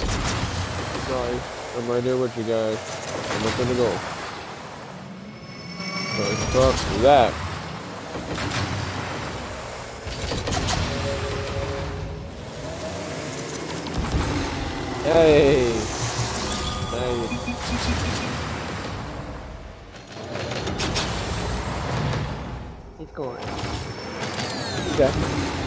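Game cars boost and hit a ball with thumps and whooshes.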